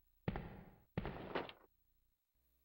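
A metal drawer slides open.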